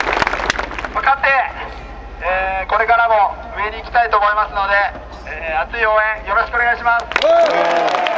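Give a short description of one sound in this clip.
A young man speaks through a megaphone.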